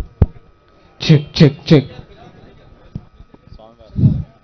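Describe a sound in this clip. A man speaks loudly through a microphone.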